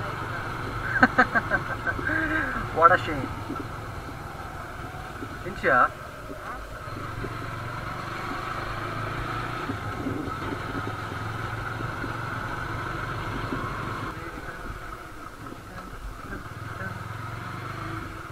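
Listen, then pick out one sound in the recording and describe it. Wind rushes past as the motorcycle moves.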